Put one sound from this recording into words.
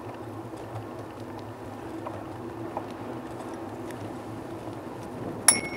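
Wheels roll steadily over a paved path outdoors.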